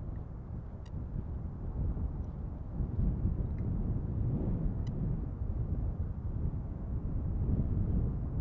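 A jet airliner's engines roar steadily as it approaches from far off.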